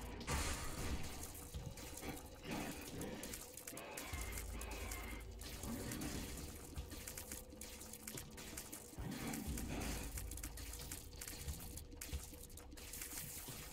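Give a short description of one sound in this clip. Video game shots pop and splatter rapidly.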